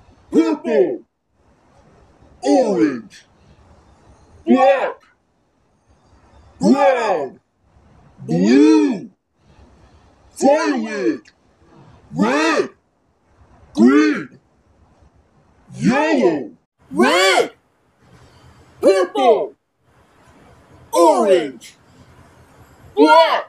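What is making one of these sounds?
A young boy says short words loudly into a close microphone, one every couple of seconds.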